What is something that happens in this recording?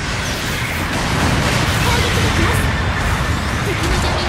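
A heavy machine gun fires rapid bursts.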